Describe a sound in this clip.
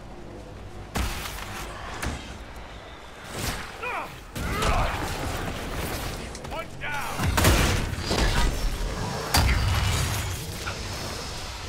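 Magic blasts crackle and explode in a fight.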